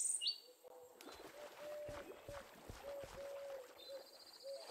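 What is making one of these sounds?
Water splashes softly as a swimmer paddles through it.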